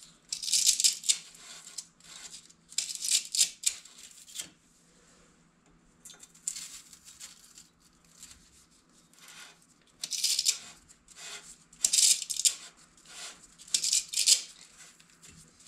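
A small hand tool whirs in short, sharp bursts.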